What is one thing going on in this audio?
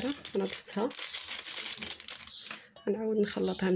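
A paper packet rustles as it is shaken.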